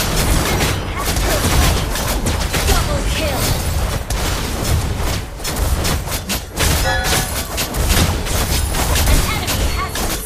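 Game sound effects of spells, hits and explosions clash rapidly and continuously.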